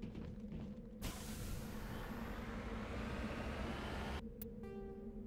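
A vehicle engine hums and rises in pitch as it drives.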